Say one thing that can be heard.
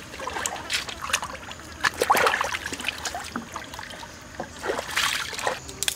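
Water splashes as hands scoop and pour it.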